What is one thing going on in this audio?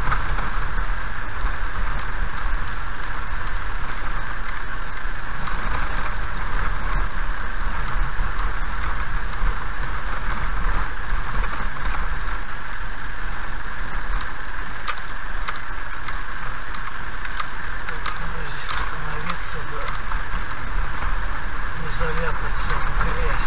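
A car engine hums steadily while driving slowly.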